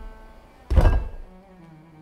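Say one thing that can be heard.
A spoon scrapes pumpkin flesh.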